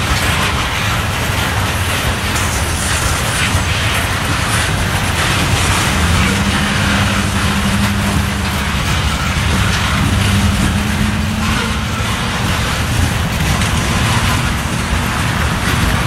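A long freight train of hopper cars rolls past.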